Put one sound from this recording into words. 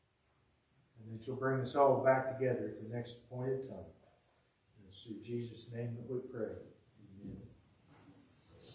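A man speaks calmly in a large echoing room.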